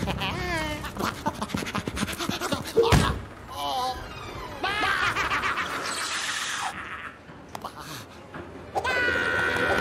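A cartoon creature shrieks and babbles in a high, squeaky voice.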